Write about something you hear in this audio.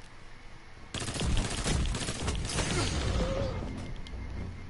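Rapid gunshots crack from a rifle.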